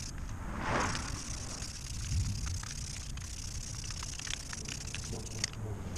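A hand tool clinks against a wheel's nuts.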